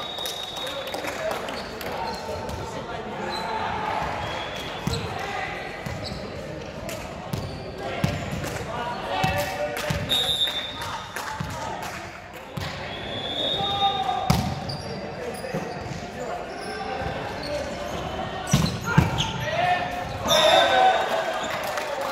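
A volleyball is struck and bounces on a hard floor, echoing in a large hall.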